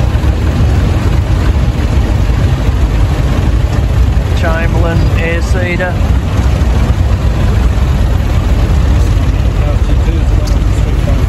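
A tractor engine rumbles steadily as it drives slowly past.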